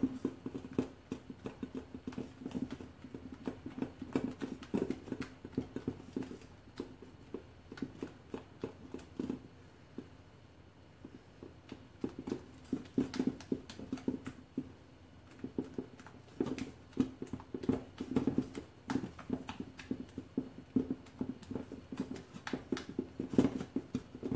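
A spatula scrapes and knocks rapidly against a metal bowl while stirring batter.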